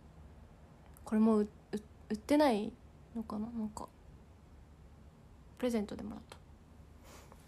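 A young woman speaks close by in short, lively bursts.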